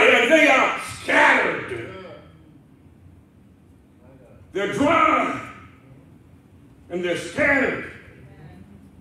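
A man preaches forcefully into a microphone in bursts, with pauses between, heard in a reverberant room.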